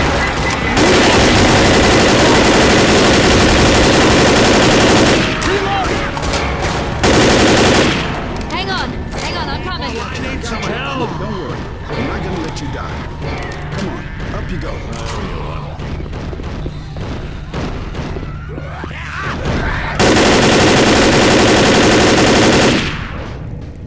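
An automatic rifle fires loud rapid bursts.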